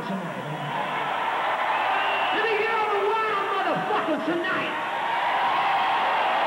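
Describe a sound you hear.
Loud live music plays through big loudspeakers in a large echoing hall.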